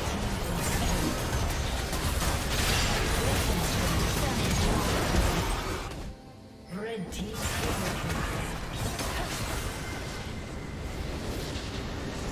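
Game spell effects crash and explode in a loud battle.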